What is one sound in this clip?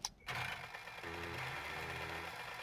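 A small motorbike engine idles with a low putter.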